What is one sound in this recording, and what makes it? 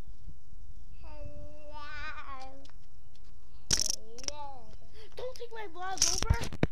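A small child speaks near by.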